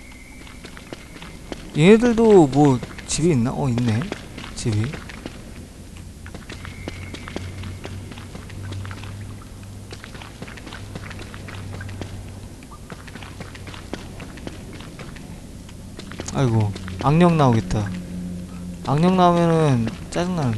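Footsteps patter softly on stone.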